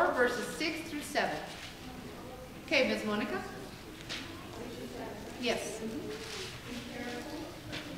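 A woman speaks calmly into a microphone in an echoing hall.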